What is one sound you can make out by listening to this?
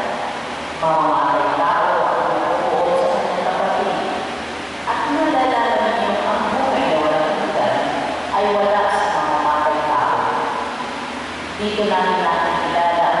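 A woman sings slowly into a microphone, heard through loudspeakers in an echoing hall.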